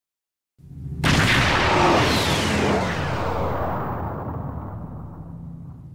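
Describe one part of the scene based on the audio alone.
A spaceship engine roars past with a rushing whoosh that slowly fades.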